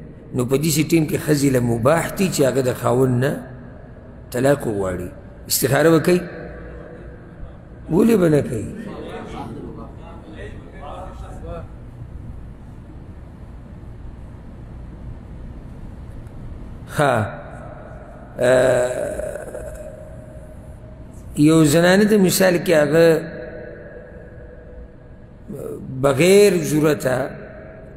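A man speaks calmly and slowly into a microphone, in bursts with long pauses, in a room with some echo.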